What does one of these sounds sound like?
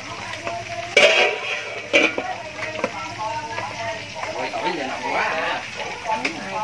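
Metal utensils clatter.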